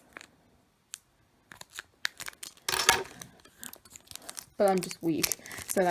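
A plastic wrapper crinkles as a hand moves it.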